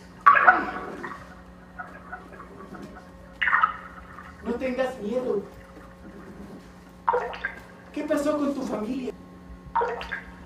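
A young woman speaks expressively in a room with some echo.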